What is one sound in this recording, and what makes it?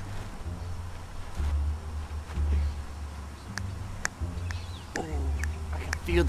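A young man speaks quietly and casually close by.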